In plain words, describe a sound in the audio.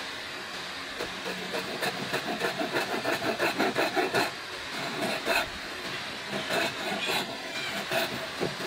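A bow saw cuts through wood with rapid rasping strokes.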